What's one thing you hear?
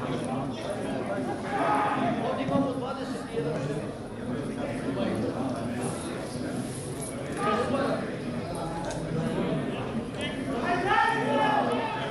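Football players shout to each other across an open pitch.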